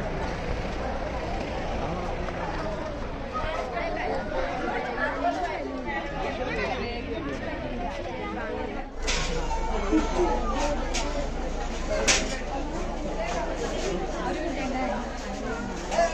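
A crowd of men and women chatters close by outdoors.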